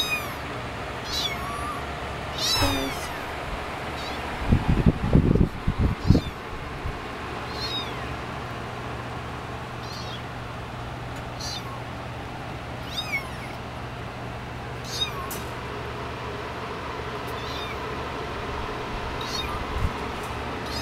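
A small kitten mews in high, thin cries, again and again.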